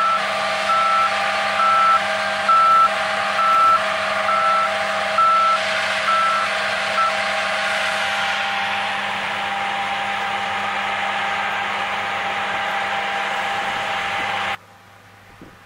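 A combine harvester engine drones steadily close by.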